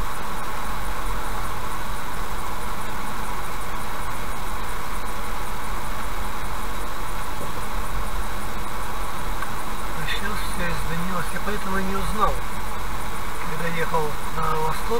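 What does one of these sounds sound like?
A car drives along a highway with a steady rumble of tyres and engine.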